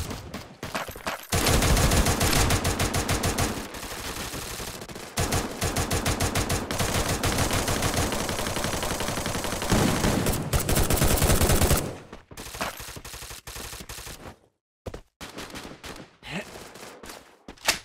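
Footsteps thud quickly on wooden floorboards.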